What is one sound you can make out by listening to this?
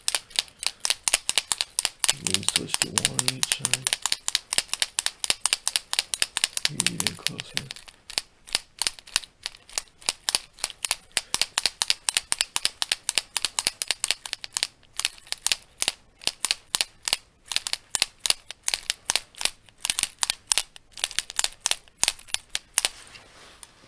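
A pen clicks rapidly and repeatedly, very close.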